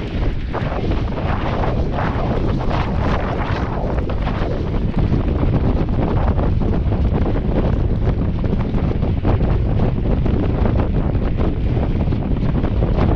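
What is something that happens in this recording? Bicycle tyres crunch over packed snow.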